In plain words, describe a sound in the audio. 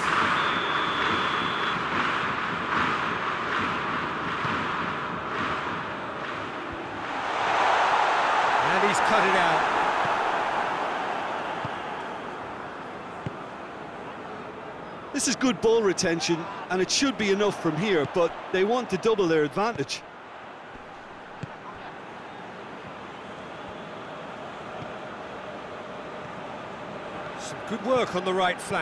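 A stadium crowd roars, swelling and then fading.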